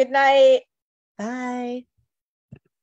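A young woman speaks brightly through an online call microphone.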